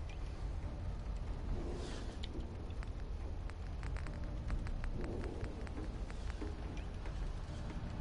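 A young man talks quietly through a microphone.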